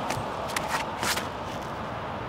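A disc whooshes as it is thrown.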